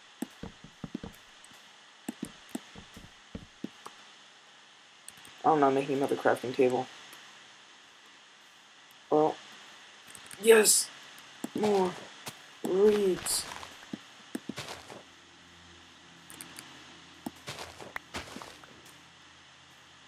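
Footsteps crunch softly on sand.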